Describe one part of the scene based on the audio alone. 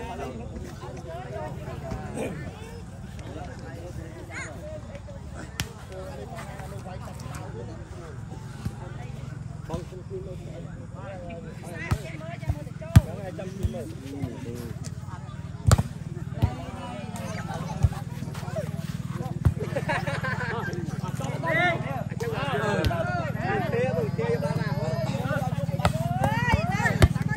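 A crowd of young men shout and chatter outdoors.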